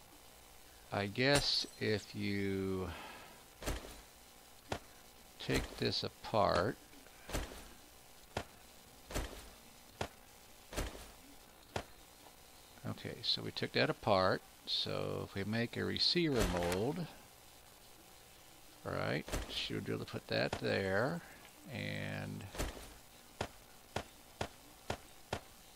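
Short interface clicks sound as items are moved around.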